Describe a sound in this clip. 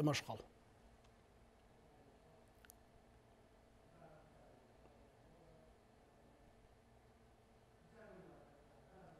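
A man speaks quietly and calmly into a microphone.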